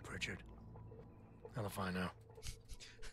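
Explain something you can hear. A man speaks in a low, weary voice.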